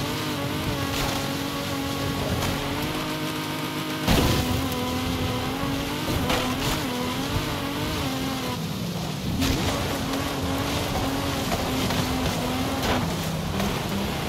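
A V12 race car engine roars at high speed.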